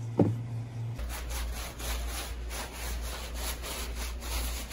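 Shoes shuffle and scuff paper across a hard floor.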